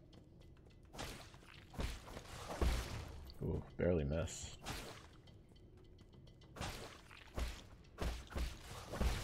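Video game sound effects whoosh and clash during a fight.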